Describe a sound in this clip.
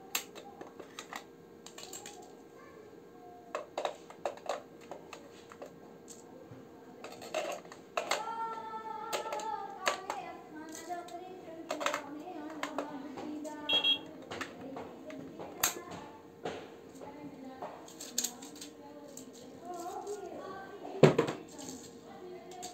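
Plastic parts click and rattle as they are handled.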